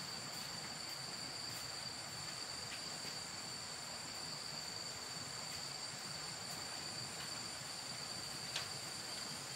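Footsteps in sandals shuffle across a hard floor.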